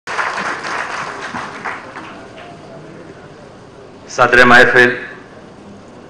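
A middle-aged man speaks through a microphone and loudspeakers in a hall with echo.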